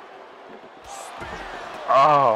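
A body slams heavily onto the floor with a thud.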